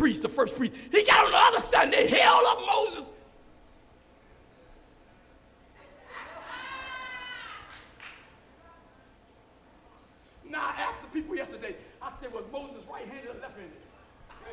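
An older man preaches loudly and fervently through a microphone in an echoing hall.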